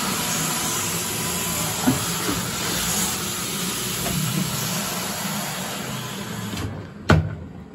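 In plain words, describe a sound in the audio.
A floor cleaning machine's motor whirs and hisses steadily, then shuts off.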